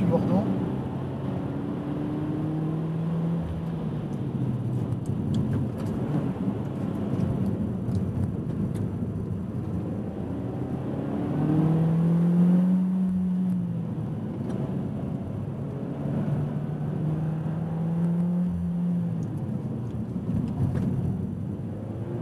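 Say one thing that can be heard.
A car engine roars, revving up and down between gear changes.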